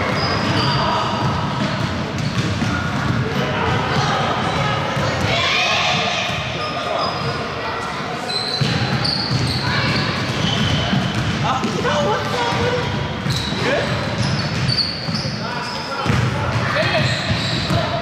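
Children shout and call out during play.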